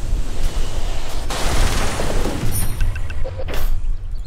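Magic spells whoosh and crackle with bursts of noise.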